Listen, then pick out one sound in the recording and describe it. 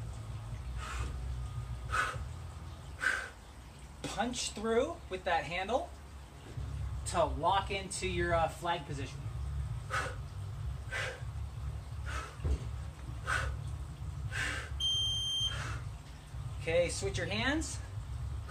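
A man breathes out sharply with each swing.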